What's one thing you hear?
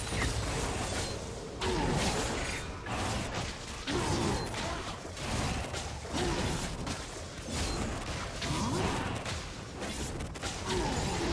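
Magic blasts whoosh and crash in a game fight.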